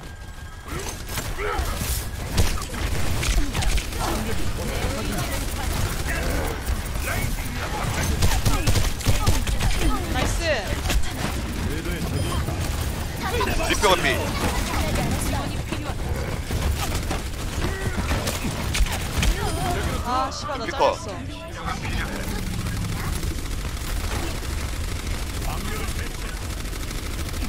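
Explosions boom in a video game.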